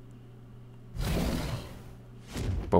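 A dragon's fire blast whooshes.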